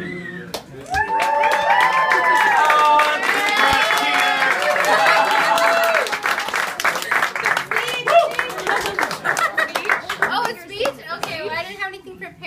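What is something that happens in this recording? People clap their hands.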